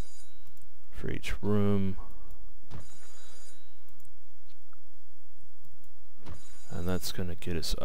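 Soft clicks from a game's menu sound now and then.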